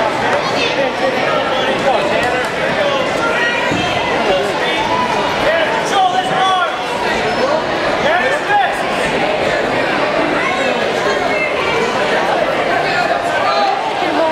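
A crowd of spectators murmurs and chatters in a large echoing gym.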